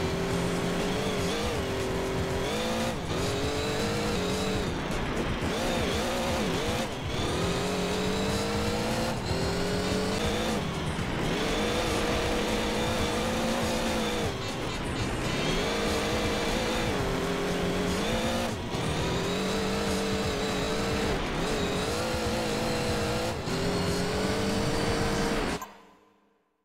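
A rally car engine roars loudly, revving up and down with each gear change.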